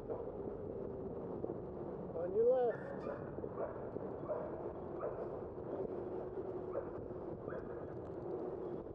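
Bicycle tyres hum on smooth pavement.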